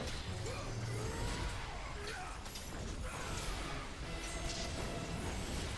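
Blades slash and strike in rapid hits.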